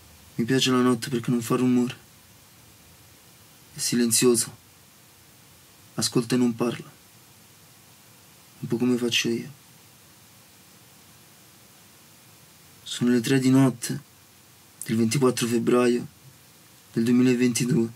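A young man speaks slowly and intensely in short phrases, with long pauses, close by.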